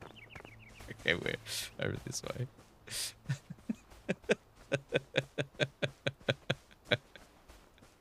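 A man laughs heartily into a nearby microphone.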